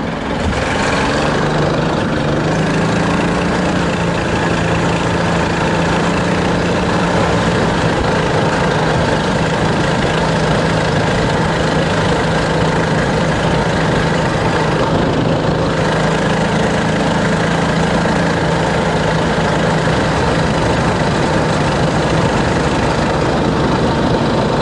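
An engine roars steadily as a vehicle drives fast.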